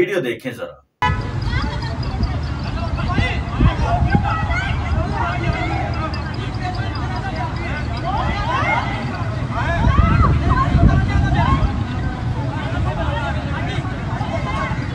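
A crowd shouts and clamours outdoors.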